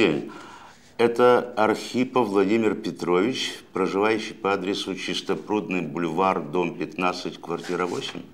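An elderly man talks steadily on a phone.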